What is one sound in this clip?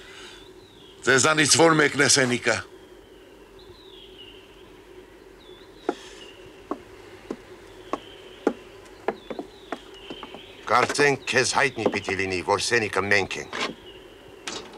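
An elderly man speaks loudly and with animation nearby.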